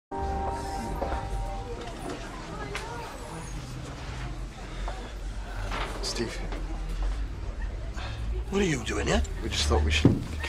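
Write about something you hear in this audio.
A crowd chatters in a busy room.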